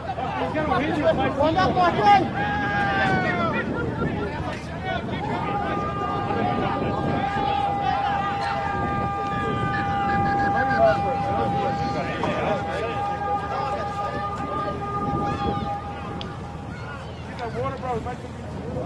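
Young men shout to each other outdoors on an open field.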